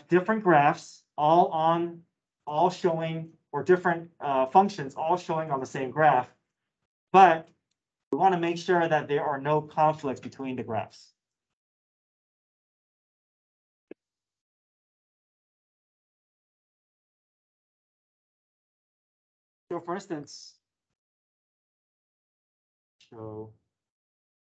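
A man speaks calmly through a microphone, as in an online call.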